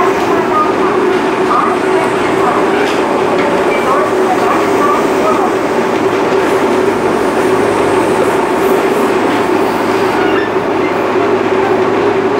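An electric commuter train runs at speed, heard from inside the carriage, with a steady motor hum and wheel rumble.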